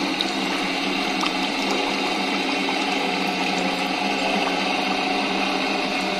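A thin stream of batter trickles steadily into a metal pan.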